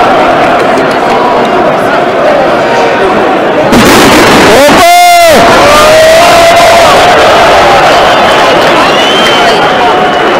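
A large stadium crowd cheers and chants loudly, echoing around the stands.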